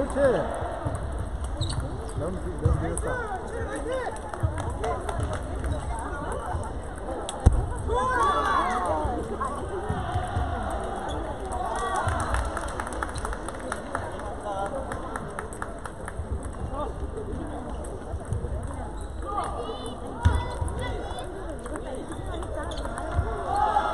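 A crowd of people chatters in the background of a large echoing hall.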